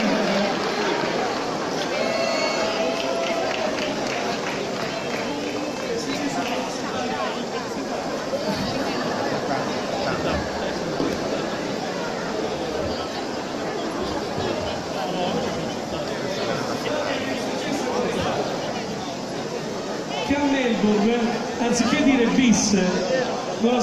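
A crowd of people chatters loudly in a large echoing hall.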